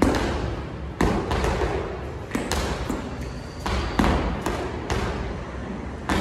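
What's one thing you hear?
A basketball bounces rhythmically on a hard concrete floor, echoing under a large roof.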